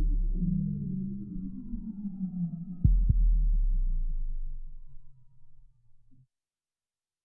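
Electronic music plays with deep bass and falling tones, then fades out.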